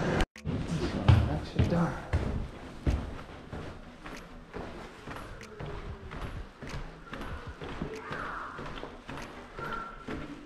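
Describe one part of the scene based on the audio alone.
Footsteps fall on a hard floor.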